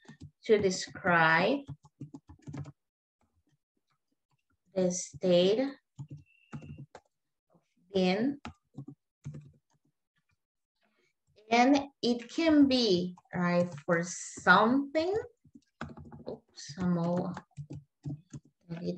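A woman speaks calmly over an online call, pausing often.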